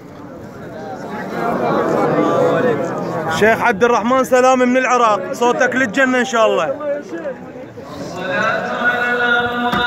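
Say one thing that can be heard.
Men shout and call out loudly close by.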